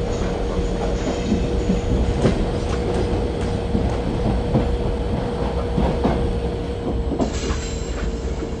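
An electric locomotive hums as it pulls a train.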